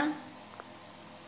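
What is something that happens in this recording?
A young woman speaks briefly and softly, close by.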